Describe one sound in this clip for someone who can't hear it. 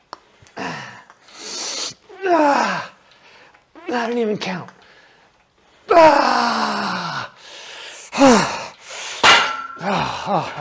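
A man yells and shouts loudly with strain.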